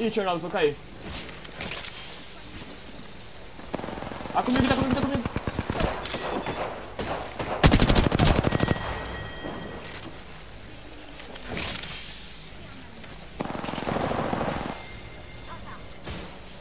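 Electric energy bursts crackle and hum.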